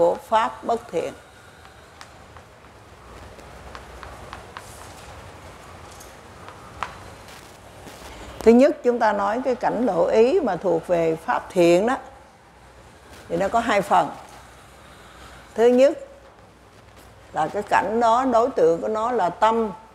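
An elderly man lectures slowly over a microphone, in an echoing room.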